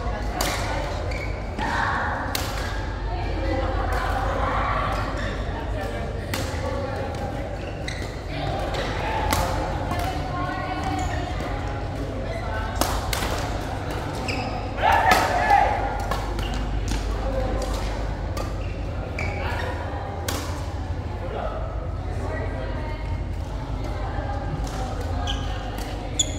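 Young players call out to each other in a large echoing hall.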